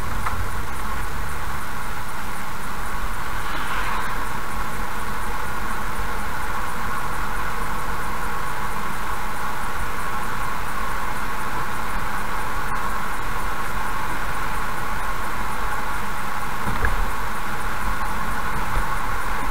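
Tyres hiss on the wet road surface.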